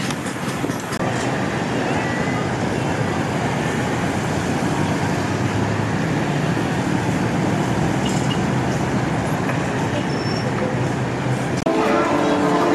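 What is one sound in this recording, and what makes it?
Dense city traffic rumbles in the distance.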